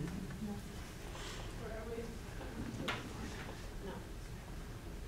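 A young woman speaks quietly at a distance.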